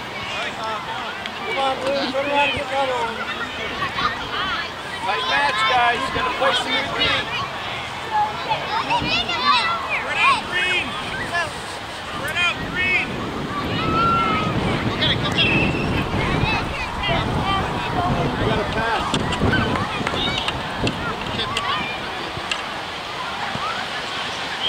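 Adults on the sidelines cheer and call out.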